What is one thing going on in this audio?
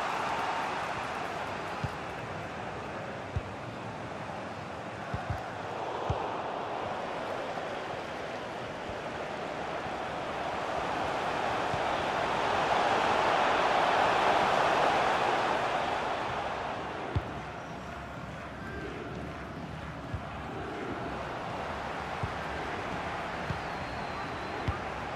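A stadium crowd roars steadily, swelling louder and then easing off.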